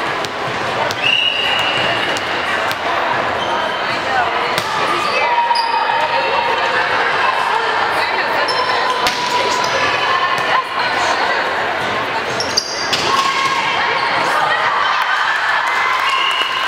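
Sneakers squeak sharply on the wooden court.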